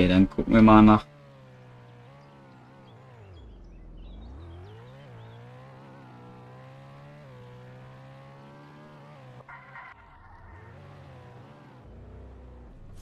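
A car engine hums and revs up and down as it speeds along.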